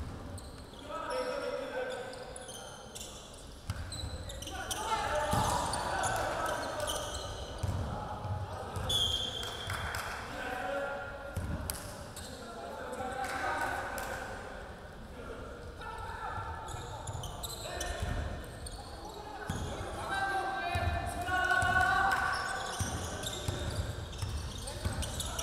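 Young men shout and call out to one another across the hall.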